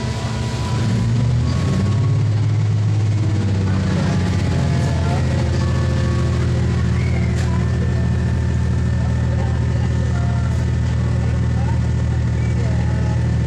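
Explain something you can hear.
A diesel railcar engine revs up as the train pulls away, heard from inside the carriage.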